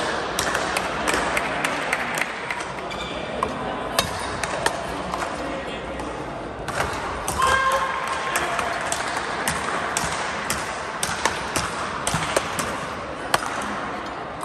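Paddles strike a ball with sharp, hollow pops, back and forth.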